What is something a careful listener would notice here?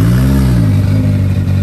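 A car engine revs briefly.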